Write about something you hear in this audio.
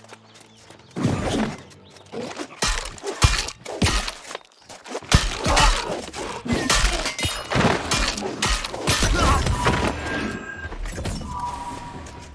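Weapons clash and strike in a fast, noisy fight.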